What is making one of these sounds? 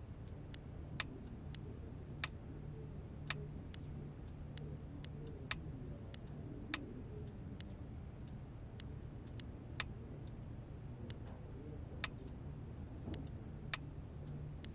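Soft interface clicks sound as menu options change.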